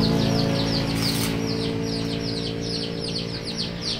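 An electric arc welder crackles and sizzles.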